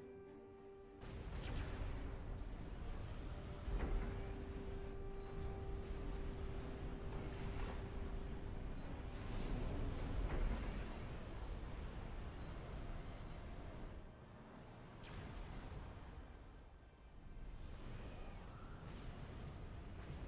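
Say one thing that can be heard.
Rapid gunfire crackles.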